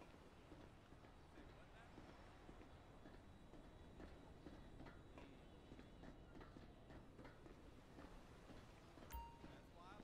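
Footsteps run across a metal deck.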